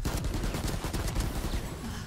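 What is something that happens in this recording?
A pistol fires shots.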